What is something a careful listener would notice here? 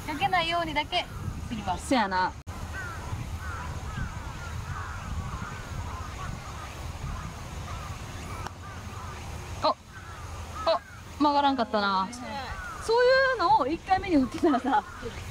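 A young woman speaks quietly and calmly nearby.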